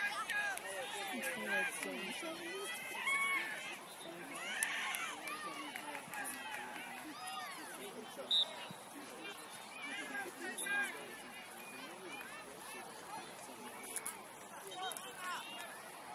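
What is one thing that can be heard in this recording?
A crowd of children and adults shout and call out across an open field outdoors.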